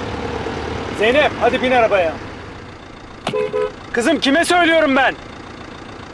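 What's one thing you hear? A man shouts angrily from inside a car.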